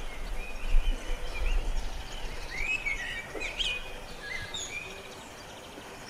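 A blackbird sings a warbling song close by.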